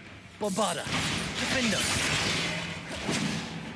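A magic spell crackles with sharp electric zaps.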